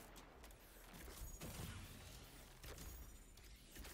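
A bow string twangs as an arrow is loosed.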